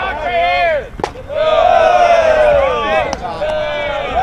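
A baseball pops into a catcher's mitt.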